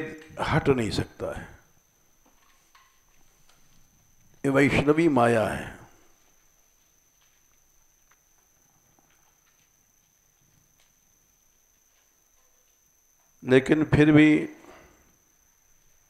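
An elderly man speaks calmly in short phrases through a headset microphone.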